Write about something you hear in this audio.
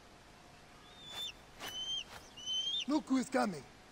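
An eagle screeches overhead.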